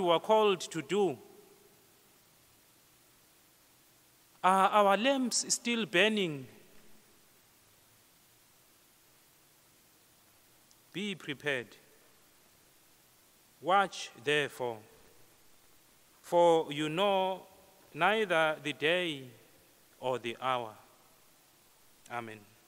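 A man speaks calmly into a microphone, in phrases with pauses, in a large echoing hall.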